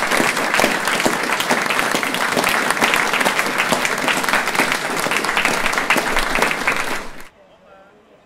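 An audience claps and cheers loudly in a room.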